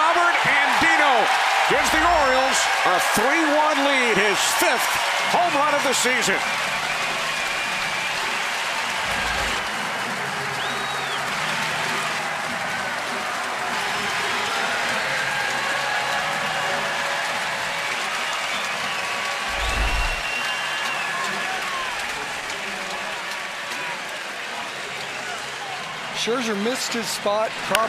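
A large crowd cheers loudly outdoors.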